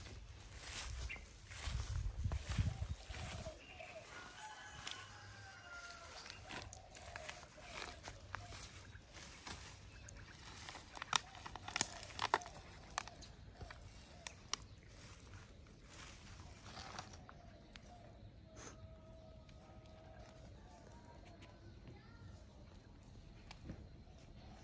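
A small monkey squeaks softly.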